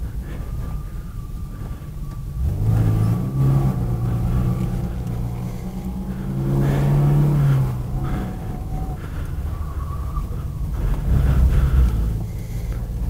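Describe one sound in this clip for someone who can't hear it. Tyres hum on the track.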